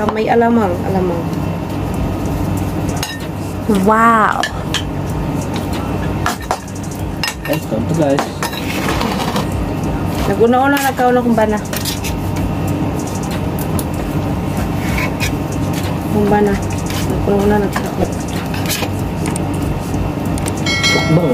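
A spoon clinks against a ceramic bowl.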